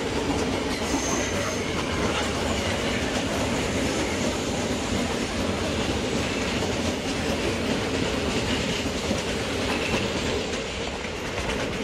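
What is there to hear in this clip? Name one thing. An electric suburban train rolls past on rails with a steady rumble.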